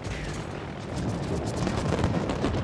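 Anti-aircraft shells burst in rapid, crackling pops.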